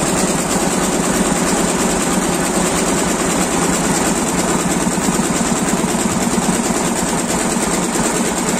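An embroidery machine stitches with a fast, steady, rattling clatter.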